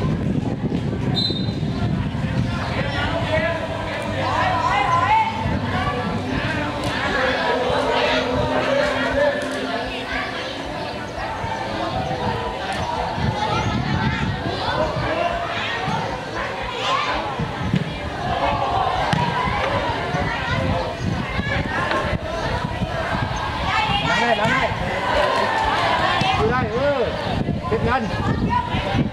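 Children shout and call out to each other during a game outdoors.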